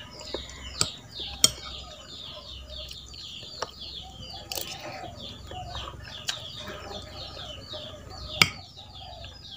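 A metal spoon clinks and scrapes against a plate.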